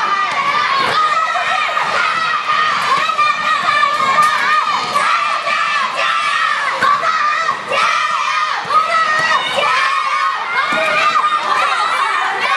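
A crowd of young children shouts and cheers in a large echoing hall.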